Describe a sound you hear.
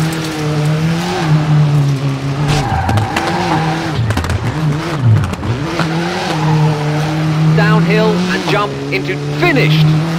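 Gravel and grit crackle under a rally car's tyres.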